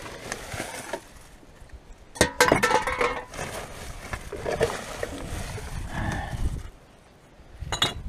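Glass bottles clink against each other.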